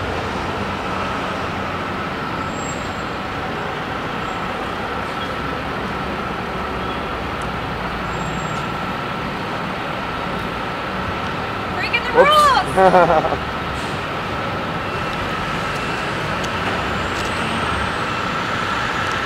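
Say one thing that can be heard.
A crane engine hums steadily nearby.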